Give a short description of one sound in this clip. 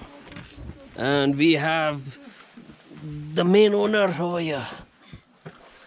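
A young boy talks loudly and with animation close by.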